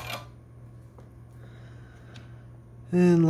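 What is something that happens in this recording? A metal probe clicks lightly against a circuit board.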